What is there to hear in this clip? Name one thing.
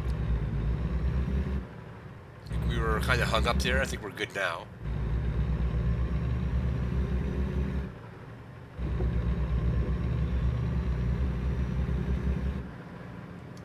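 A truck engine rumbles loudly and steadily.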